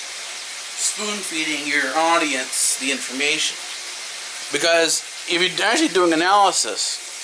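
A middle-aged man talks close by, calmly and casually.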